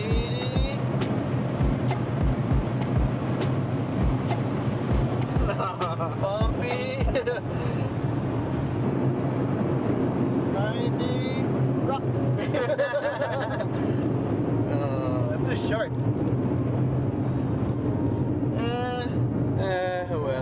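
A car engine and tyres hum from inside the car at speed.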